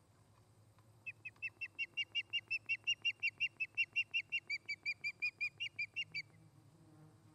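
An osprey calls with a rapid series of high, sharp chirps close by.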